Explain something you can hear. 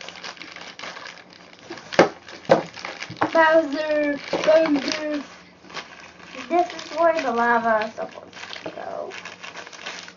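Plastic toy packaging crinkles and rustles.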